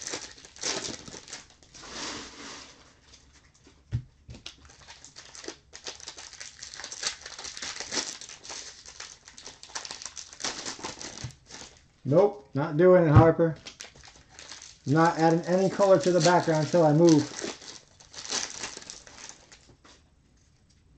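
A plastic wrapper crinkles and crackles as it is torn open.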